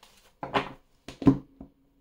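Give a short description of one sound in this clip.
A card is set down on a wooden table with a light tap.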